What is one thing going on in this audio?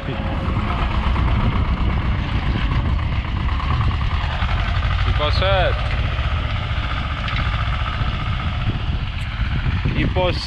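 A plough scrapes and churns through soil.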